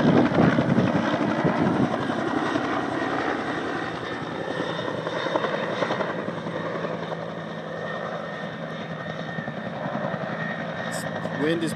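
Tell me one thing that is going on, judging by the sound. A helicopter's rotor thumps in the distance and fades away.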